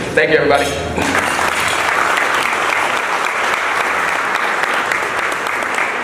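A crowd cheers and applauds.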